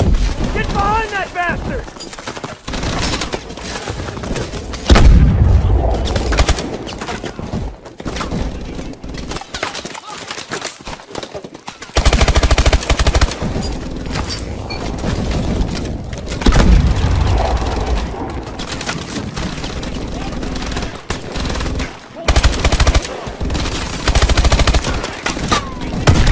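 A rifle fires rapid bursts at close range.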